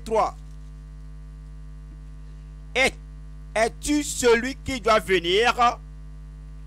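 A man speaks with animation into a microphone, heard through loudspeakers, with pauses between phrases.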